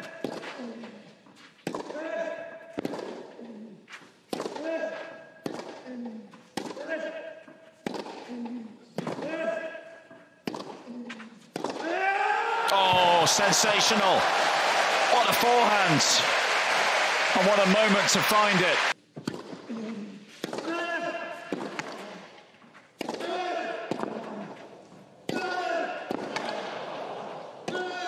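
A tennis ball is struck back and forth with sharp pops of a racket.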